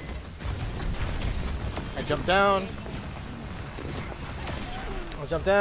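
Game weapons fire in rapid bursts.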